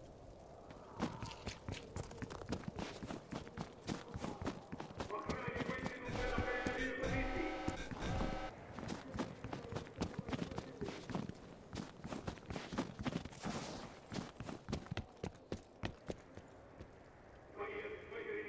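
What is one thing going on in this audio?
Footsteps crunch quickly through snow.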